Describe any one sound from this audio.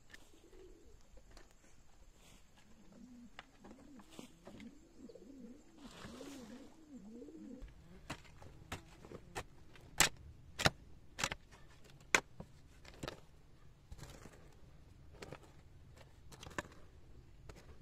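A hoe strikes soil with repeated dull thuds.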